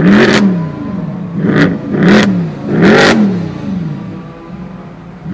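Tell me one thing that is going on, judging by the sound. A powerful car engine revs sharply several times, then settles to a low idle.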